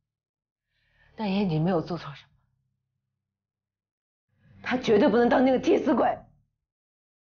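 A woman speaks in a low, tense voice close by.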